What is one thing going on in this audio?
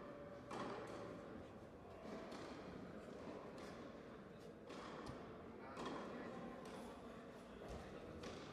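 Rackets strike a tennis ball back and forth in a steady rally, echoing in a large hall.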